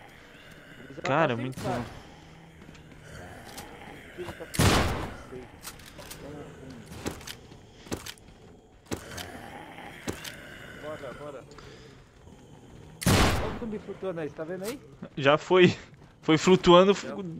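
A young man speaks with animation, heard close through a microphone.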